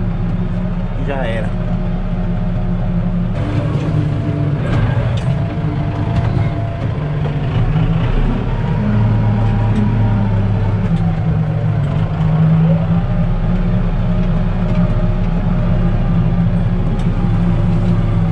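Dry cane stalks scrape and rustle against the tractor.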